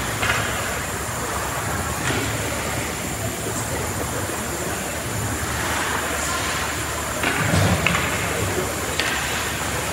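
Skates scrape across the ice in a large echoing rink.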